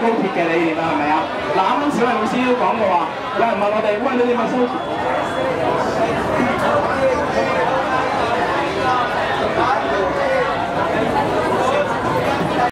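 A crowd murmurs and chatters in an echoing hall.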